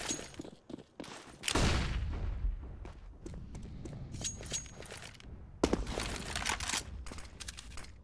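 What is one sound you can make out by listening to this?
Footsteps thud along a hard floor.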